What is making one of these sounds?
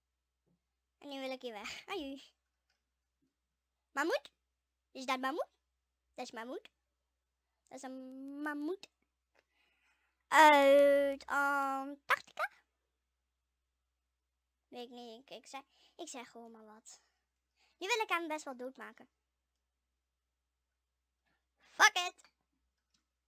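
A boy talks with animation into a close microphone, in short bursts.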